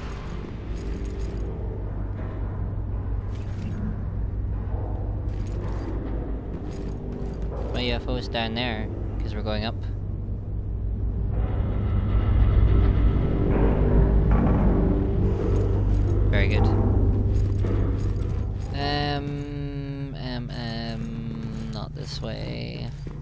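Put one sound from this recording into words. Heavy footsteps clank on a hard floor.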